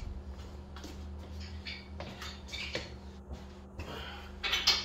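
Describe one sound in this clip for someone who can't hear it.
Footsteps shuffle on a concrete floor.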